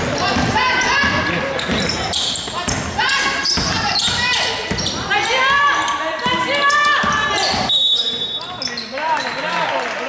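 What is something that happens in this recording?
Young women players shout to each other across an echoing gym.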